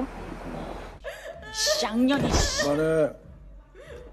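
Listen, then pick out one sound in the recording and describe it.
A young woman shouts angrily.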